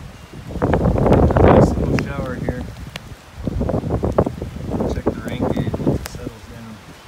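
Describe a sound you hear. Strong wind gusts roar through trees outdoors.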